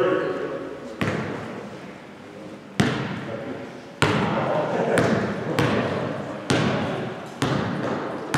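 A basketball bounces on a hard floor, echoing loudly in a large hall.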